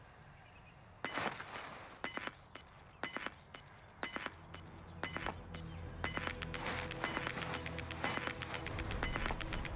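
An electronic device beeps repeatedly.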